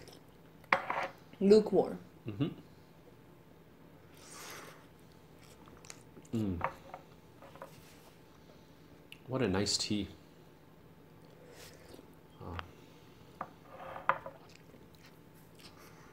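A man slurps tea loudly.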